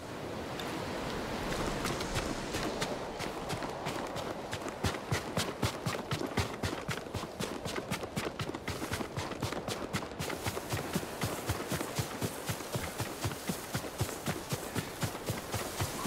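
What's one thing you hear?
Strong wind gusts steadily outdoors.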